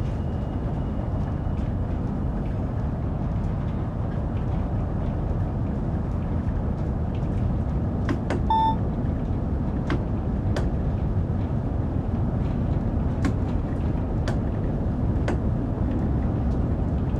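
A train rumbles steadily through a tunnel, gathering speed.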